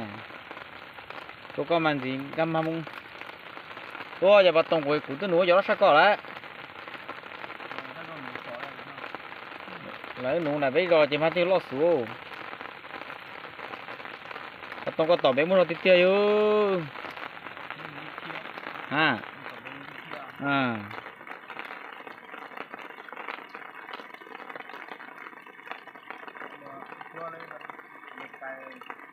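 Rain patters steadily on the water.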